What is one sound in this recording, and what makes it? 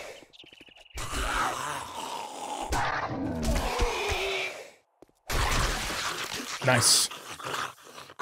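A zombie growls and groans.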